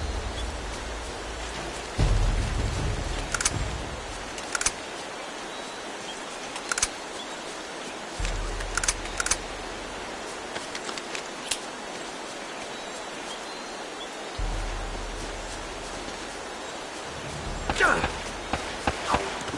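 Fires crackle nearby.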